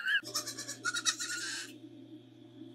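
A young goat bleats loudly close by.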